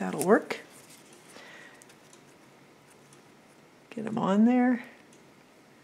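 Paper crinkles softly as it is handled.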